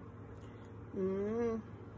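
A young woman speaks briefly and softly, close to a phone's microphone.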